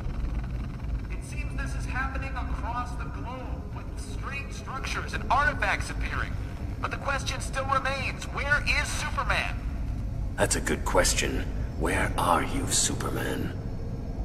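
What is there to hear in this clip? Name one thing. A man speaks calmly through a loudspeaker, like a news broadcast.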